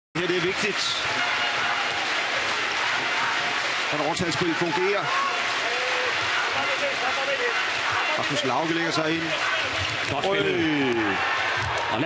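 A handball bounces on a hard floor.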